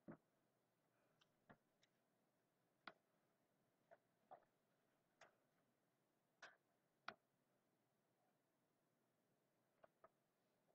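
A felt-tip marker taps and squeaks in short strokes on paper.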